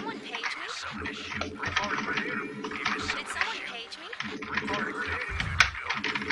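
Rapid gunfire crackles and pops in a busy battle.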